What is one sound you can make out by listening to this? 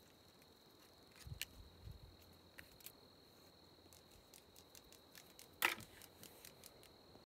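Plastic ribbon crinkles and rustles in a man's hands.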